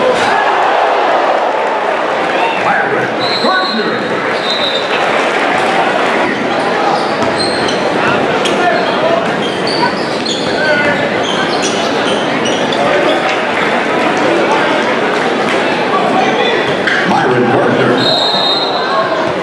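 A crowd cheers in a large echoing gym.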